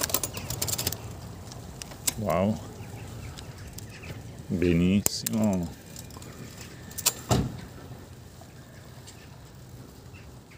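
Bicycle tyres roll quietly over pavement.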